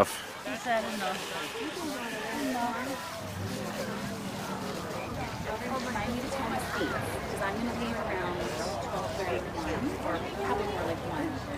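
A crowd of adults and children chatter outdoors.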